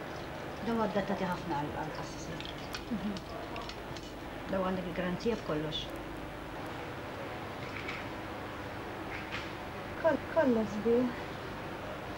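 A middle-aged woman talks calmly nearby.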